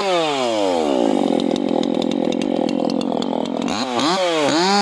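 A chainsaw cuts into wood with a rough, rasping whine.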